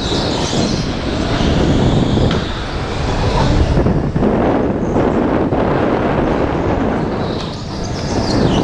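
Tyres rumble and squeal on a smooth floor.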